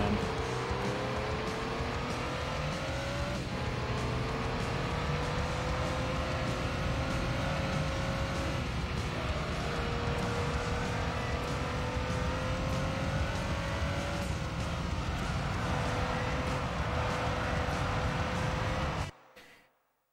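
A racing car engine roars at high revs, climbing in pitch and dropping with each gear change.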